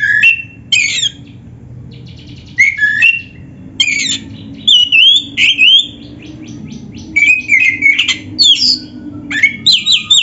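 A songbird sings loud, varied whistles and chattering trills close by.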